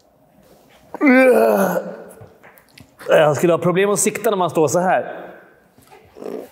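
A middle-aged man speaks with animation nearby.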